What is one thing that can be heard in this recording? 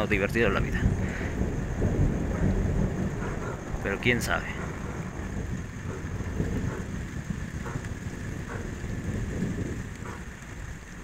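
Thunder rumbles low and long, then slowly fades.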